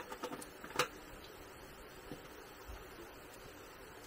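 Utensils clink and tap on a table.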